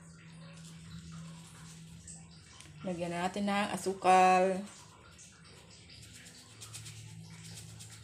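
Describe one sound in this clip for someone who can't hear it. Sugar pours softly into a pot.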